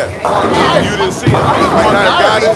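Bowling pins clatter as a ball crashes into them.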